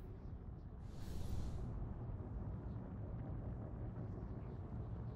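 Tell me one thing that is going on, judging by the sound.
Spacecraft engines roar steadily.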